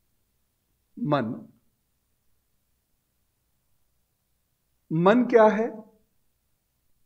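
A middle-aged man speaks with animation into a close microphone, in short bursts.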